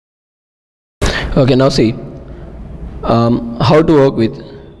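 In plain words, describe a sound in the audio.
A young man speaks calmly through a close microphone.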